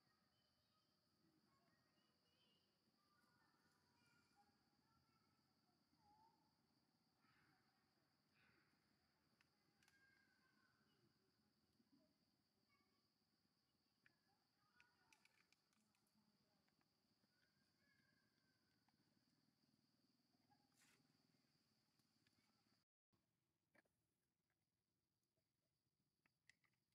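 A baby monkey squeaks softly nearby.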